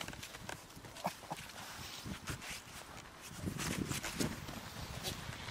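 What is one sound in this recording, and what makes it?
A goat's hooves scrape and tap on a man's jacket as it climbs onto his back.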